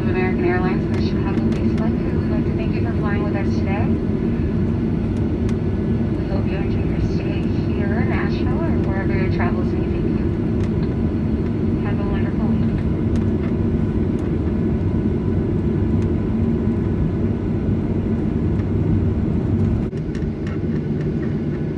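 A jet engine hums with a steady, low rumble.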